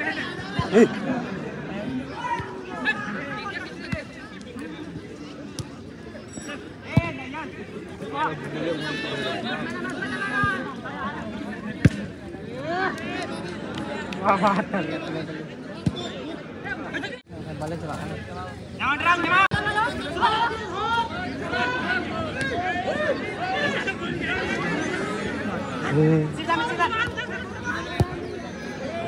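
A crowd of spectators chatters and shouts outdoors.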